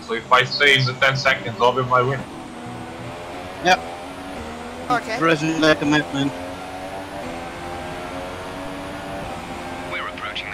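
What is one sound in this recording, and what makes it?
A racing car engine whines loudly, rising in pitch as it speeds up through the gears.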